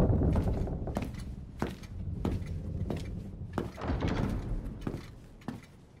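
Footsteps echo across a large hall.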